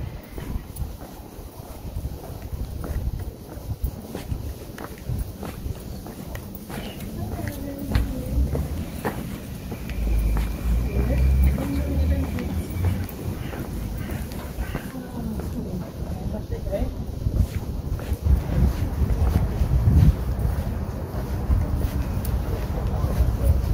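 Footsteps tap on paving stones close by.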